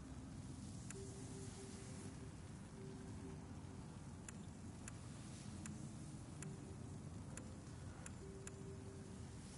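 Short soft menu clicks sound as a selection moves.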